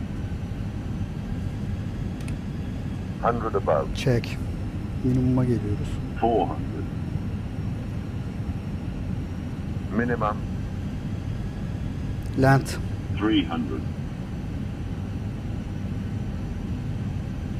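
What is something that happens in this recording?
A jet engine drones steadily in the background.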